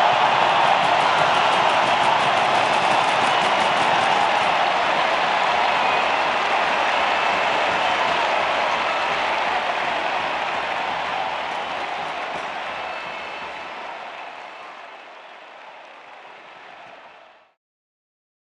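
A large crowd cheers loudly in an open stadium, then slowly fades away.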